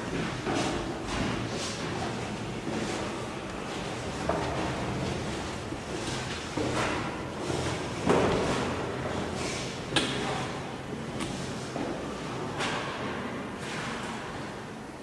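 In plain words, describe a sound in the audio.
Footsteps clang on metal stairs with a hollow echo.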